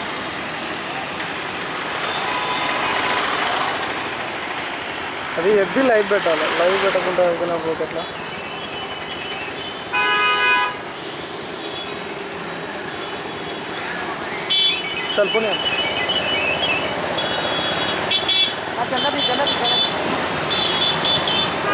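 Many motorcycle engines rumble steadily.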